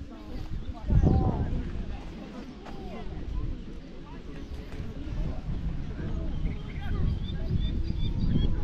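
Wind blows outdoors, rumbling steadily against the microphone.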